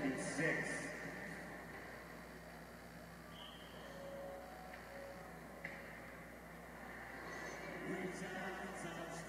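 Skate blades scrape across the ice in a large echoing hall.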